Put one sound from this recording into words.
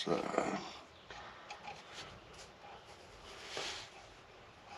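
A wrench clicks and scrapes against metal.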